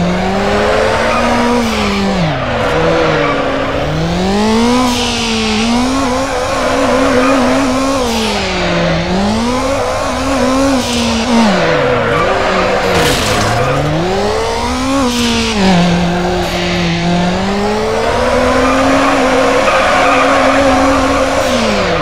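Tyres screech loudly while a car drifts around corners.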